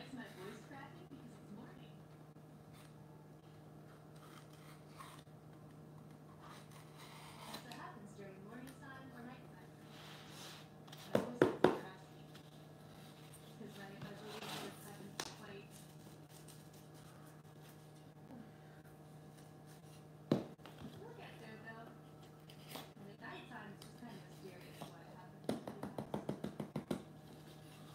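A craft knife scratches through cardboard.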